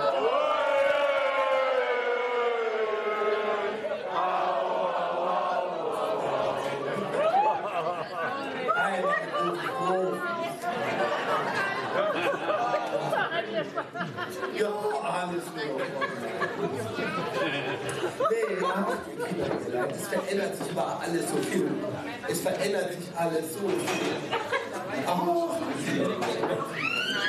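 A man speaks with animation through a headset microphone, amplified over loudspeakers in a hall.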